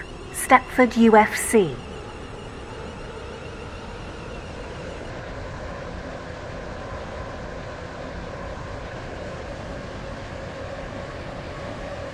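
An electric train's motors hum as the train gathers speed on the track.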